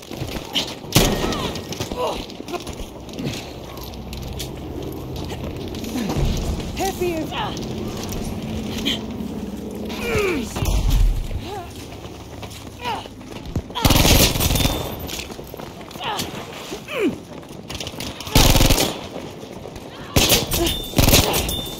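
Gunshots crack loudly in bursts.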